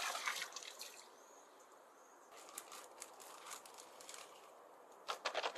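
A plastic sack rustles as it is handled.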